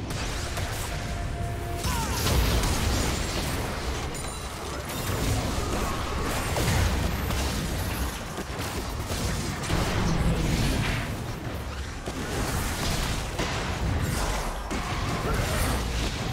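Magic spells whoosh and crackle in a busy fantasy battle.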